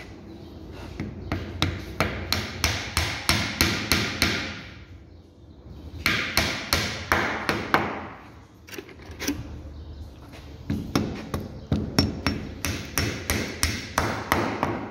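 A hammer taps a wooden dowel into wood in quick, repeated blows.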